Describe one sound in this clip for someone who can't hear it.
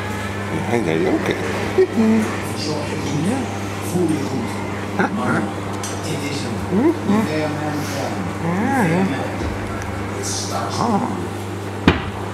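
German Shepherd puppies whimper and squeak.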